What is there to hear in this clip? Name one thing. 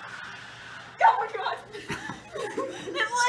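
A young woman laughs and talks loudly close by.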